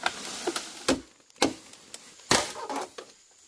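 A machete chops into bamboo with sharp knocks.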